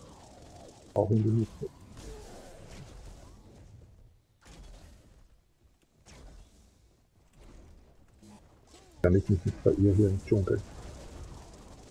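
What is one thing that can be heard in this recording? Magic blasts zap and crackle in short bursts.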